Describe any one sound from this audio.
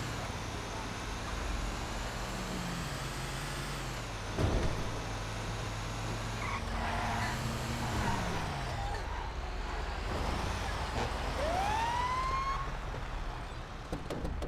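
A fire truck engine rumbles and revs as the truck drives along.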